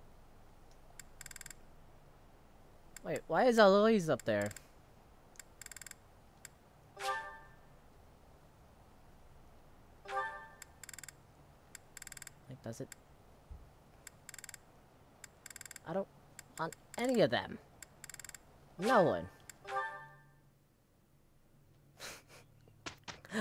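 Game menu sounds chime and click as choices are made.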